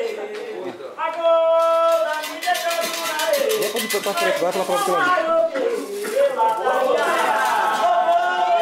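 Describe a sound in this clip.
A group of men and women sing together nearby.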